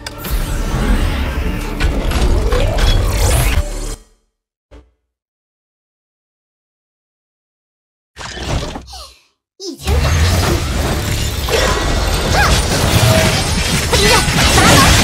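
Combat sound effects clash, whoosh and crackle loudly.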